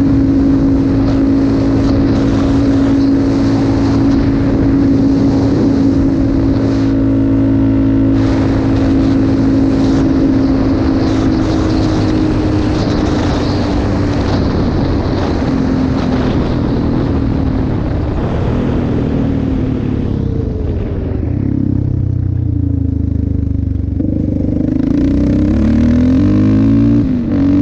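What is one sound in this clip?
Wind rushes hard past the rider.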